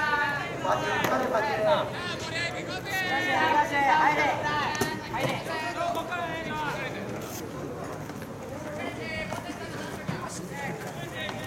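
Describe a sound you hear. Young male players shout and call out together across an open outdoor field.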